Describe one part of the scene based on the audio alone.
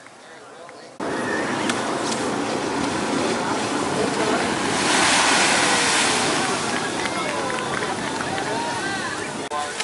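Waves wash and fizz over the shore.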